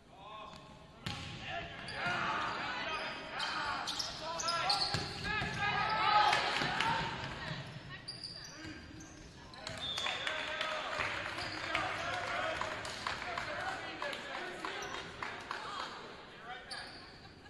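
Players shout and call out in a large echoing gym.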